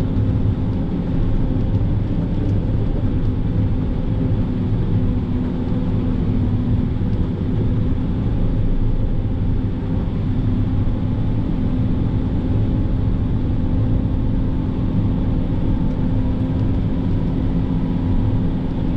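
Snow crunches and scrapes under the tracks of a moving vehicle.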